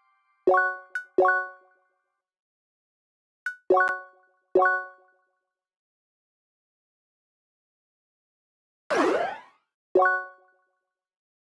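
Short electronic menu blips chime.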